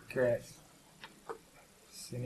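A stone clicks down onto a wooden board.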